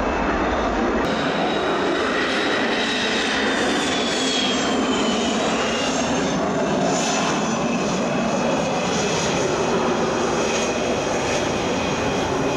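A jet engine whines steadily close by.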